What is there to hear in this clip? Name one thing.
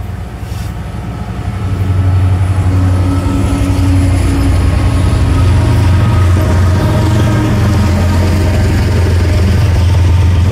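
Diesel locomotive engines rumble loudly as a freight train passes close by.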